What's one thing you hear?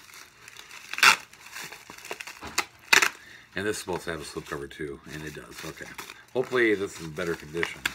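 Paper rustles and crinkles in a man's hands.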